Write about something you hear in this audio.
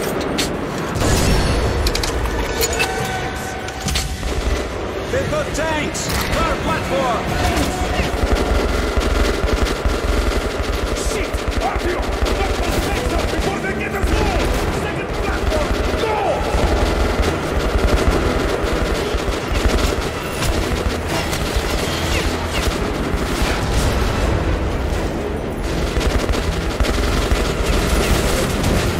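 Rapid gunfire rattles loudly with heavy booming impacts.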